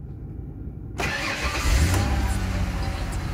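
A car engine cranks and starts.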